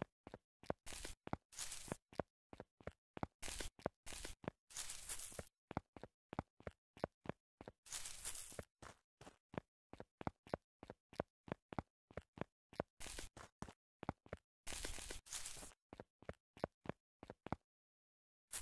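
Footsteps crunch steadily over dry leaves and dirt.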